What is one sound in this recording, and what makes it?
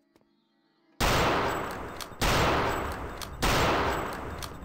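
Gunshots crack loudly with a ringing echo.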